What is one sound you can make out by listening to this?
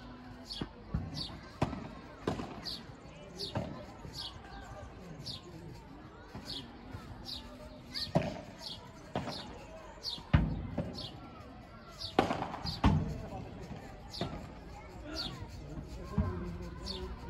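A ball bounces on the court and off glass walls with dull knocks.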